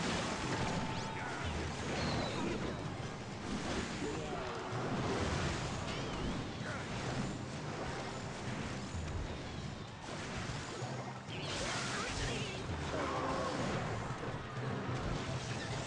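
Video game battle effects clash and crackle.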